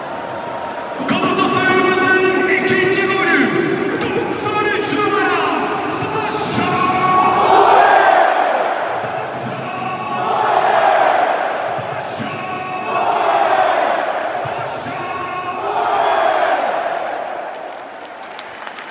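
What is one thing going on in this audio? A huge stadium crowd sings and chants loudly in unison.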